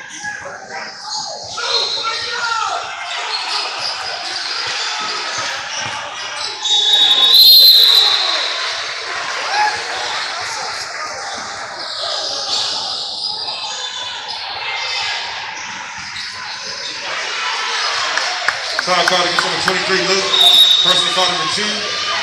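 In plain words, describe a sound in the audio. Sneakers squeak sharply on a wooden court.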